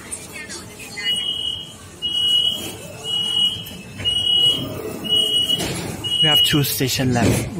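A door warning chime beeps rapidly in repeated bursts.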